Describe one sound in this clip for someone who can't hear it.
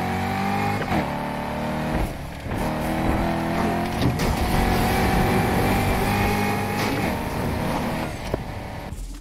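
Tyres hiss and screech on the road.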